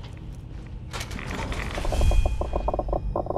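A heavy metal door slides open.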